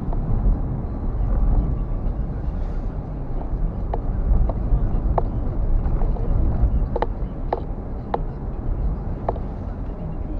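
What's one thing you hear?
A car engine hums steadily with a low rumble of tyres on the road.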